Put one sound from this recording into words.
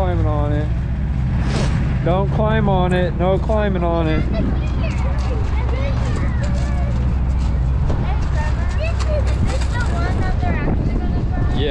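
Children talk and call out excitedly nearby.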